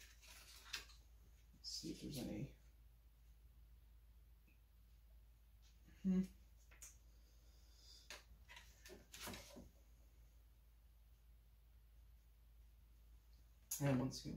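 Plastic parts rustle and click as they are handled.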